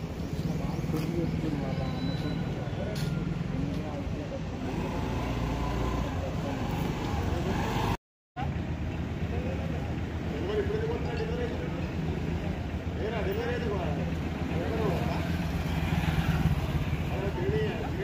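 Men talk calmly nearby outdoors.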